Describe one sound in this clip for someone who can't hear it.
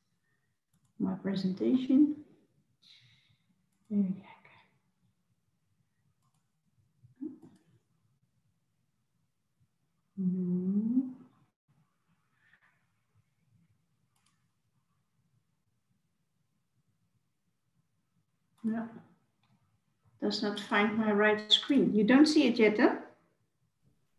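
A woman speaks calmly over an online call, with pauses.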